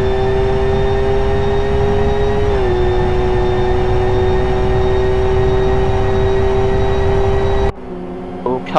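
A racing car's engine drones steadily at high revs, heard from inside the car.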